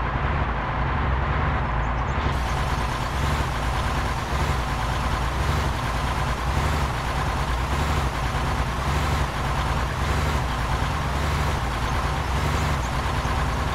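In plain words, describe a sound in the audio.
A truck engine rumbles steadily as it drives along a road.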